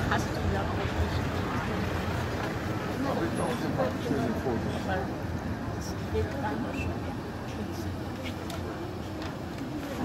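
A van drives past.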